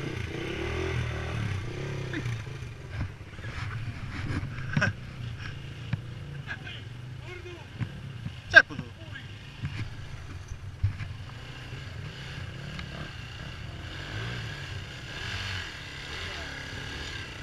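A motorbike engine idles close by with a low, uneven rumble.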